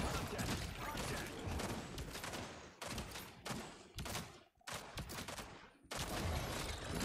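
An energy weapon fires in rapid bursts.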